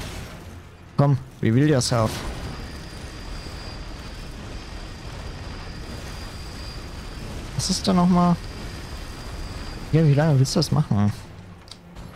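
Heavy metal wheels clang and scrape against stone.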